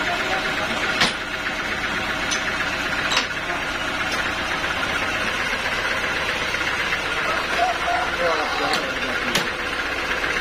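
A heavy log knocks against a wooden sawmill carriage.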